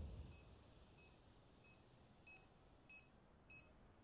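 Footsteps tap at an even pace.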